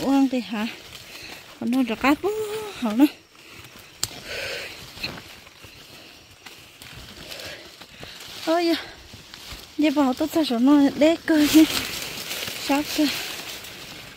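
A child speaks in a high voice nearby, in short bursts.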